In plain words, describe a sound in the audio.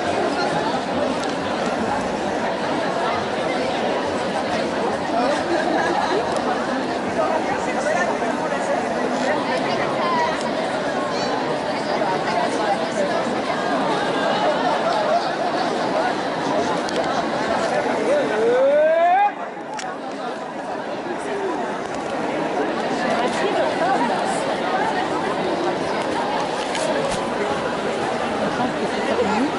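A large crowd of women and men chants and shouts loudly outdoors.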